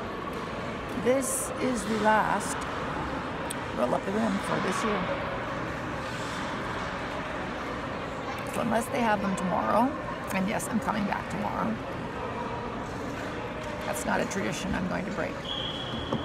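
An older woman talks calmly and close by.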